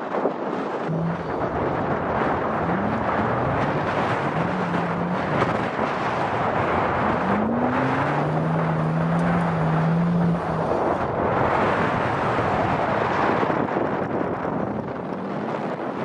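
A small car engine revs hard.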